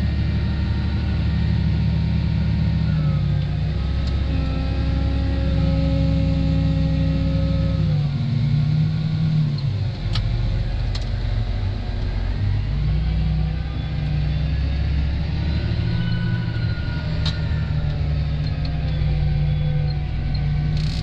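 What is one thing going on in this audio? A tractor engine drones steadily from inside the cab, rising and falling in pitch.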